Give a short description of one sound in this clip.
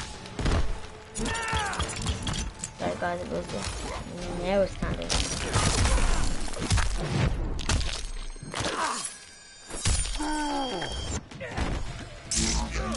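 Heavy punches and kicks land with loud thuds and cracks.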